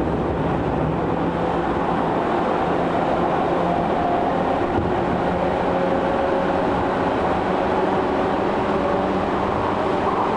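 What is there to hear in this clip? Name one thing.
An electric commuter train rumbles along the track at speed, heard from inside the car.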